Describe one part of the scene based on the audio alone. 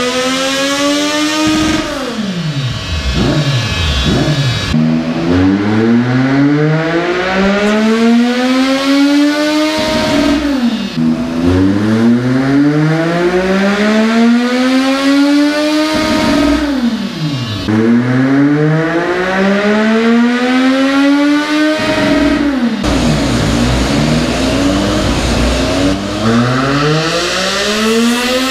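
A motorcycle engine revs hard, rising through the gears and dropping back again and again.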